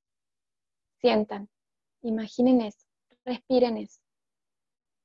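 A woman speaks calmly in short phrases, heard close through an online call.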